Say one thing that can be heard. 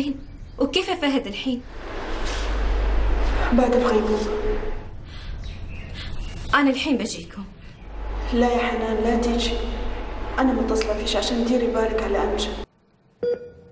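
A woman answers on a phone, speaking tensely.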